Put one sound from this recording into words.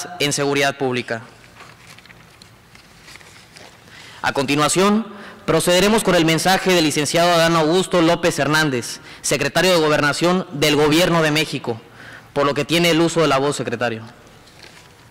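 A man speaks steadily through a microphone and loudspeakers in a large echoing hall.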